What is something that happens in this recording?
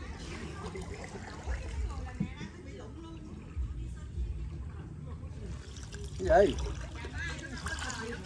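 Water laps softly against a small wooden boat gliding along.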